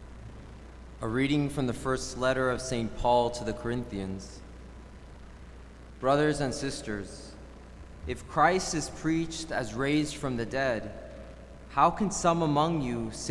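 A young man speaks calmly into a microphone, heard through loudspeakers in an echoing hall.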